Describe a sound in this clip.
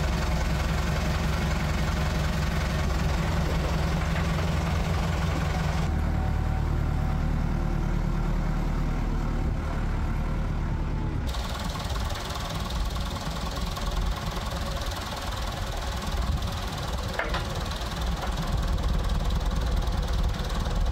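A tractor diesel engine idles and rumbles steadily.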